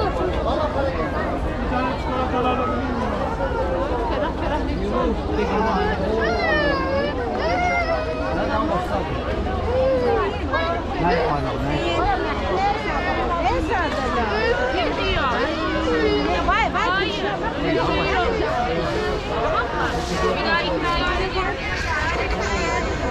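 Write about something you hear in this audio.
A large crowd of men, women and children chatters all around, close by, outdoors.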